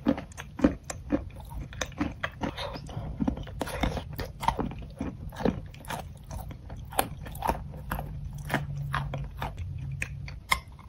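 A woman chews a soft, creamy food up close with wet, sticky mouth sounds.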